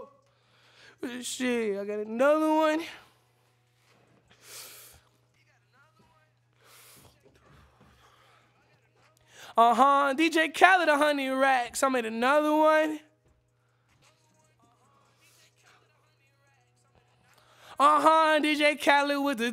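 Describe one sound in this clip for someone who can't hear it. A young man sings close into a microphone in short phrases.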